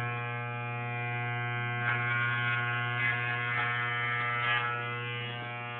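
Fingers rustle through hair close by.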